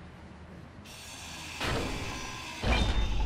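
A power grinder grinds against metal.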